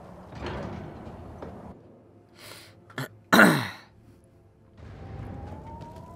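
A heavy stone door grinds open.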